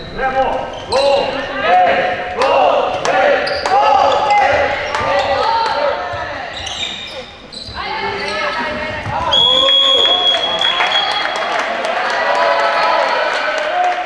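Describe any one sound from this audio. A ball thuds as it bounces and is thrown.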